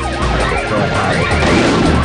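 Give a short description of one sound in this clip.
Laser shots fire in quick bursts.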